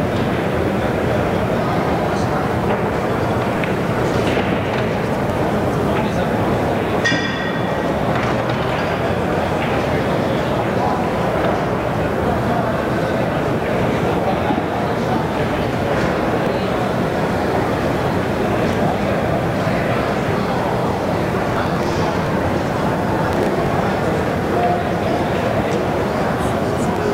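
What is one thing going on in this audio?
Many people chatter in a large, echoing hall.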